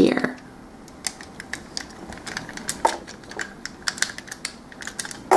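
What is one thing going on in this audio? Plastic toy parts click and snap as they are moved.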